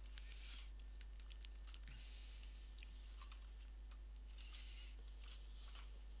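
Plastic clicks and snaps as a laptop casing is pried open.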